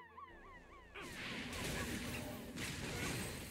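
A magic spell bursts with a loud crackling blast.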